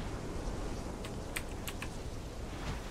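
Short interface clicks tick as a menu is browsed.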